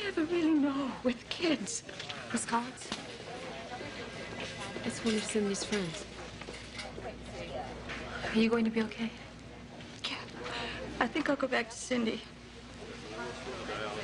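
A woman speaks anxiously, close by.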